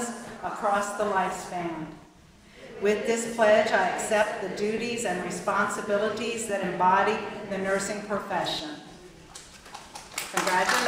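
A middle-aged woman speaks calmly into a microphone in a large hall.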